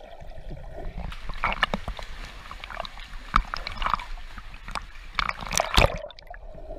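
Water laps and echoes in a rocky cave.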